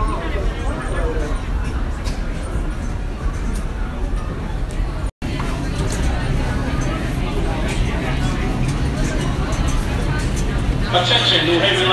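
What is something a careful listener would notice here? A crowd chatters and murmurs in an echoing underground space.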